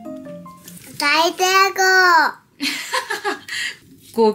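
A small child shouts out excitedly close by.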